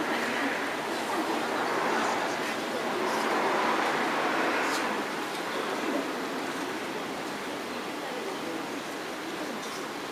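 Spectators nearby chat quietly.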